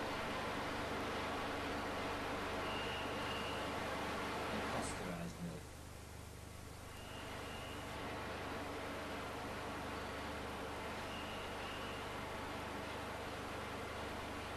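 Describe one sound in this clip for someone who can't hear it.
Liquid pours from a spout and splashes into a container.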